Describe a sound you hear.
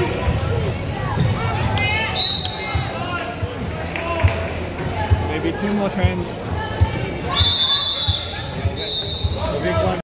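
Young girls call out to each other across the court.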